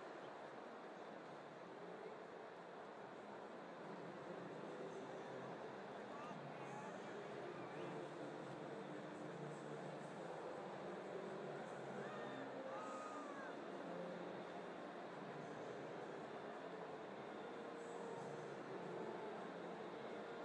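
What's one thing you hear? A large stadium crowd murmurs and chatters steadily, echoing widely.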